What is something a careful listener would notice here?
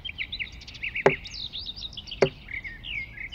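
An axe chops into a tree trunk with sharp thuds.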